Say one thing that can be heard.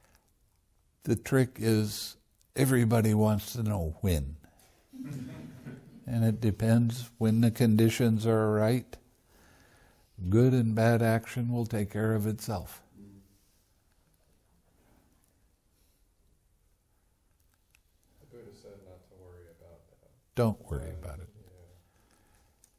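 An elderly man speaks calmly and thoughtfully, close to a microphone, with pauses.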